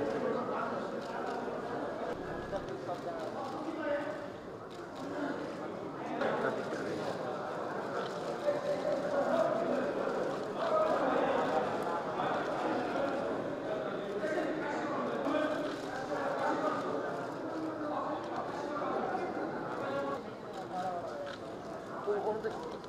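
A crowd of men and women murmur and talk in low voices nearby.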